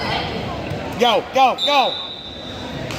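A man shouts loudly several times nearby.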